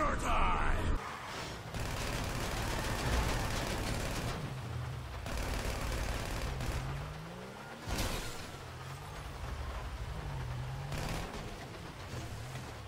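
A car engine revs as the car drives.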